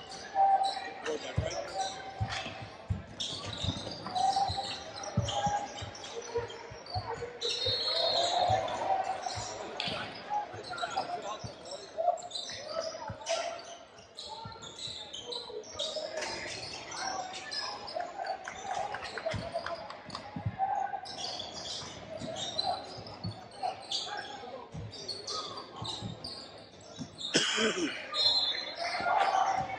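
Players and spectators call out and chatter in the background.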